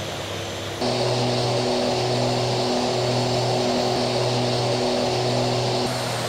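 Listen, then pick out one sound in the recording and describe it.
A jet engine roars steadily close by.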